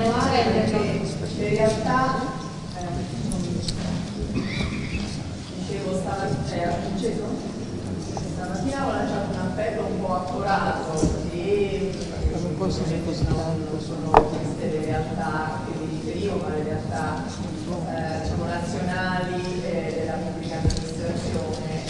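A woman speaks calmly into a microphone, heard through loudspeakers in a large echoing hall.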